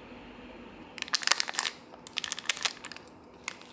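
Scissors snip through a plastic packet.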